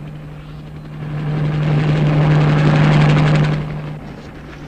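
A helicopter rotor thuds overhead.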